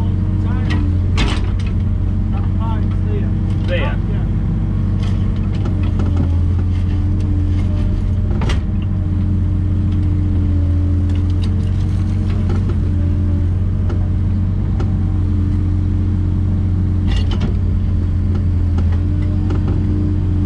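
A hydraulic pump whines as the excavator arm moves.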